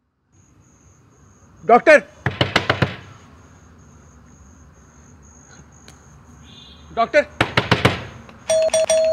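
A man knocks on a wooden door.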